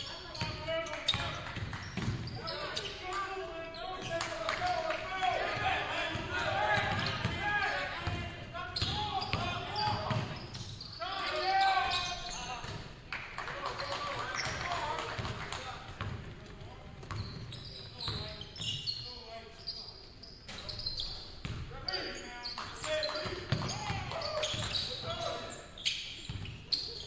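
Basketball shoes squeak sharply on a hardwood court in a large echoing gym.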